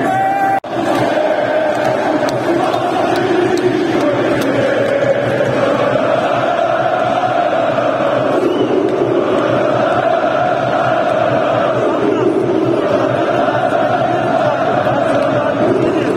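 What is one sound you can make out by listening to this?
A large stadium crowd chants loudly in unison, echoing under the roof.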